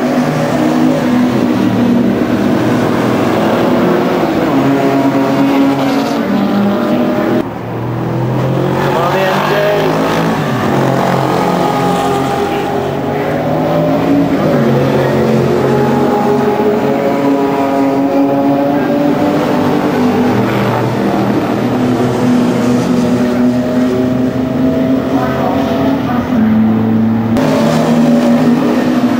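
Racing car engines roar loudly as cars speed past, rising and falling in pitch.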